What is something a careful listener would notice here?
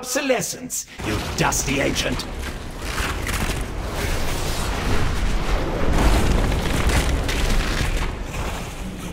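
Magic blasts crackle and boom during a fight.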